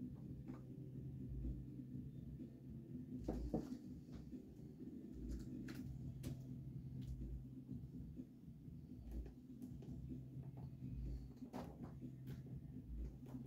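Fingers tap and click softly on a hard surface.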